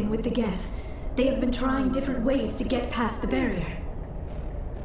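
A young woman speaks calmly and clearly.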